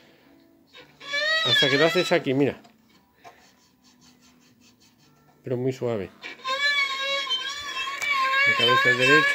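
A violin plays a short melody close by, in bursts with pauses between.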